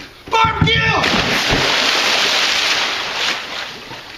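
A person splashes into a pool of water.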